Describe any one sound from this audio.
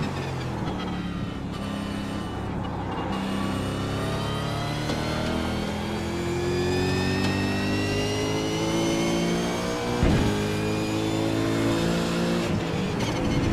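A racing car engine roars and rises in pitch as it accelerates.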